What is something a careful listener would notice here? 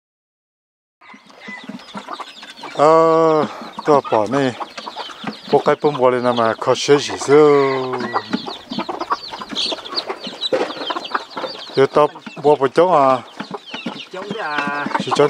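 Chickens cluck nearby.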